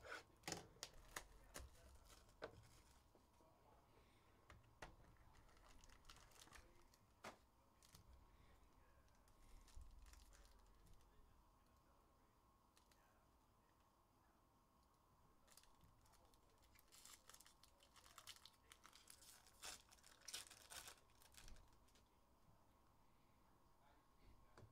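Plastic wrappers crinkle and rustle in hands.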